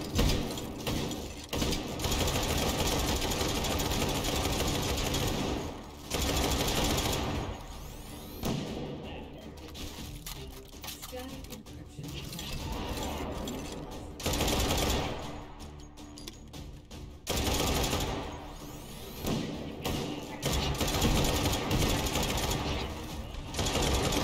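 A video game gun fires rapidly in loud bursts.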